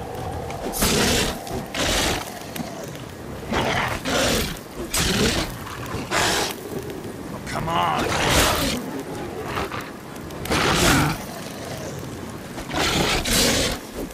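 A sword whooshes through the air.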